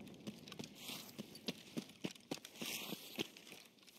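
Footsteps crunch on gravel and dry grass.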